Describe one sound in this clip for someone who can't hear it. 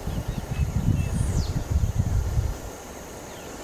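Wind rumbles outdoors in brief gusts.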